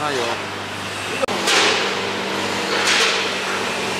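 A metal tin scrapes and clatters on a metal tabletop.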